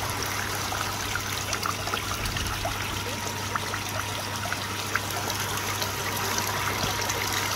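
Rain patters steadily on the surface of a pond.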